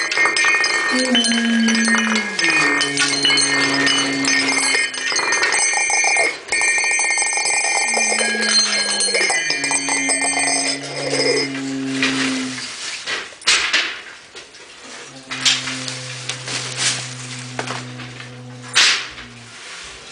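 A man blows long, low droning notes through a horn, in an echoing room.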